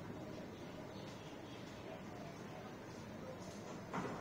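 A ceramic bowl is set down with a light clink on a hard surface.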